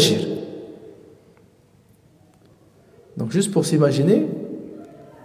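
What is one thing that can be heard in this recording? A man speaks calmly into a microphone in a reverberant room.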